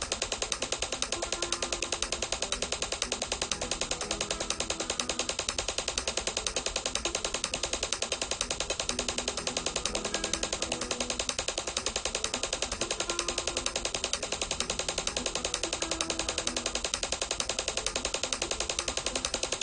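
A flamenco guitar is played with rapid fingerpicked tremolo.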